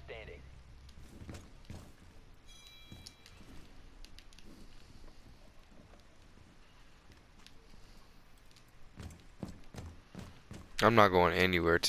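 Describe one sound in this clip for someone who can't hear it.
Footsteps tread across a hard floor.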